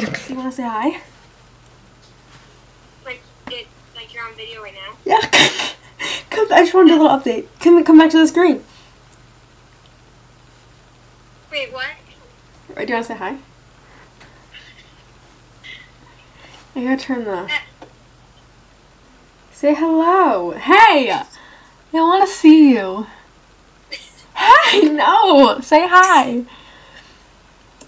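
A young girl talks close by with animation, in short bursts.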